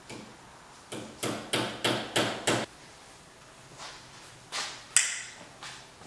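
A small metal tool clicks repeatedly as it works on cloth.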